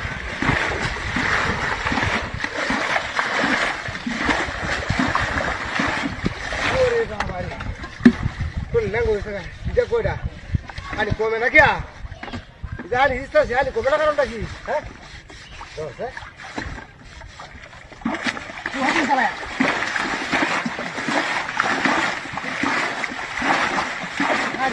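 Water splashes and gushes as a bucket of water is poured into a wooden boat.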